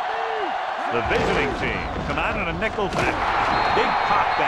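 Football players collide with thudding impacts.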